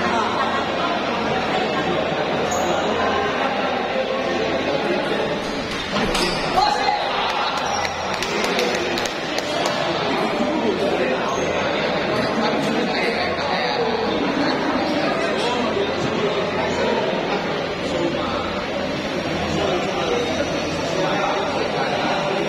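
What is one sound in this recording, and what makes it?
Table tennis balls click against paddles and the table.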